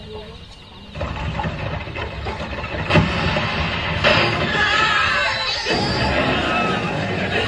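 A wooden cart rumbles along on its wheels.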